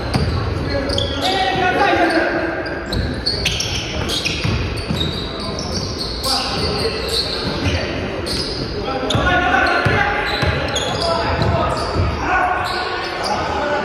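Men shout and call out to each other during play.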